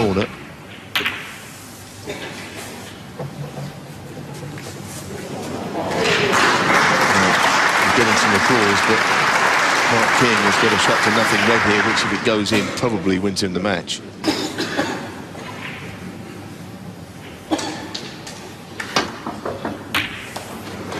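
A cue strikes a snooker ball.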